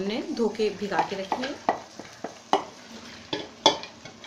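Dry lentils pour from a bowl into a pot with a soft patter.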